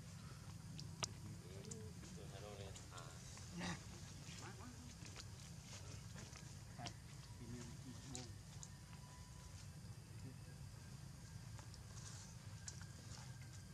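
Dry leaves rustle as monkeys shift on the ground.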